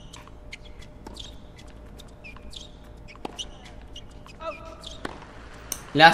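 A tennis ball is struck hard with a racket, back and forth.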